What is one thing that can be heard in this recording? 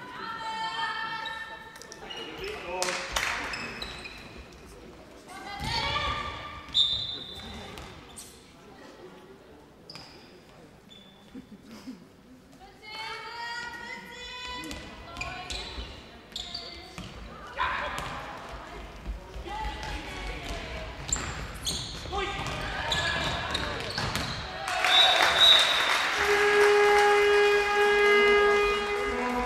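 Sneakers squeak on a floor in an echoing hall.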